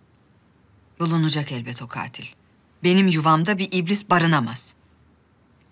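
A woman speaks calmly and firmly close by.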